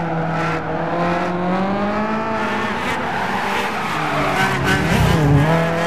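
Tyres squeal as a car slides through a corner.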